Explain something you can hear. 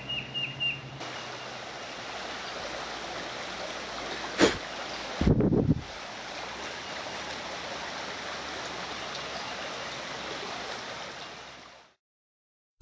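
A shallow stream trickles over stones.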